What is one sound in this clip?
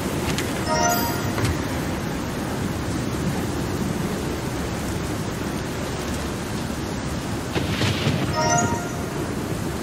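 A bright chime rings.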